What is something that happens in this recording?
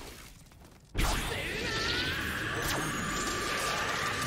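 A grappling line zips through the air.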